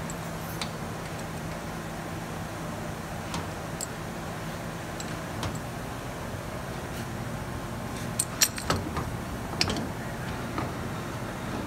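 Metal parts click and clink as a bracket is fitted by hand.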